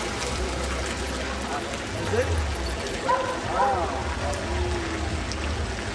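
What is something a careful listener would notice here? A dog barks close by.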